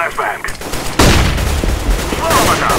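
A flashbang grenade bursts with a sharp bang.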